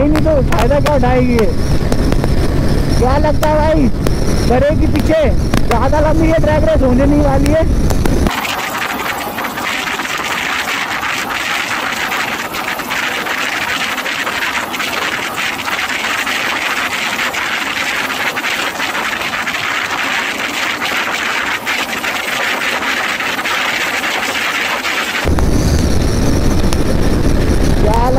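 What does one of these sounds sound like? A motorcycle engine roars and revs up and down at high speed.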